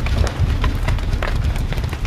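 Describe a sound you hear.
A fire crackles in a barrel.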